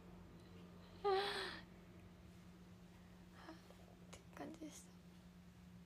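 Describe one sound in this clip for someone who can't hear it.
A young woman speaks briefly and softly close to a microphone.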